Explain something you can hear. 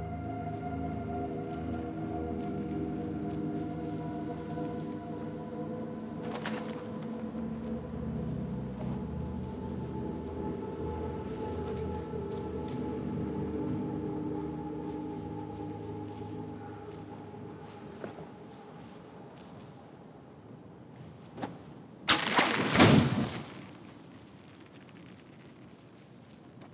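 Small footsteps crunch on dry leaves.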